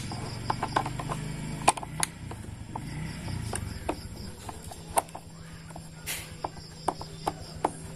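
A screwdriver taps and scrapes against metal and plastic parts.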